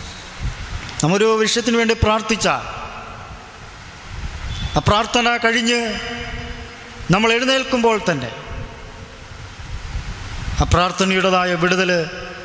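A young man speaks into a microphone in short, calm phrases with pauses, in a small echoing room.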